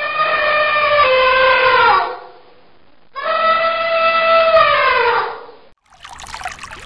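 An elephant trumpets loudly.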